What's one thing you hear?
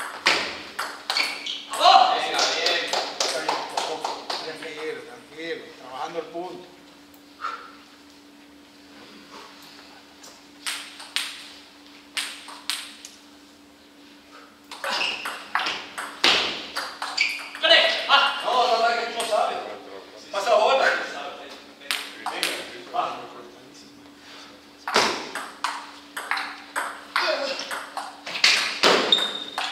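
A ping-pong ball clicks sharply back and forth off paddles and a table in an echoing hall.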